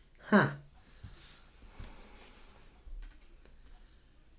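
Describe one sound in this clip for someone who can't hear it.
Cards tap softly onto a table.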